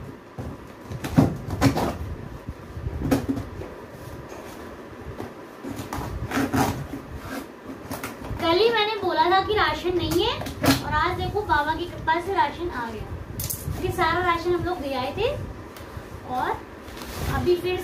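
Cardboard rustles and scrapes as a box is torn open.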